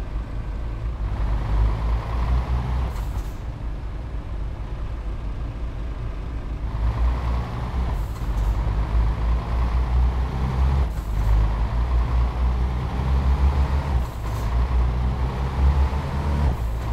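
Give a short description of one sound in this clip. A truck's diesel engine rumbles steadily and revs up as it speeds along.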